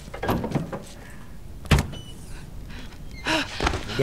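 A heavy door thuds as it is shoved.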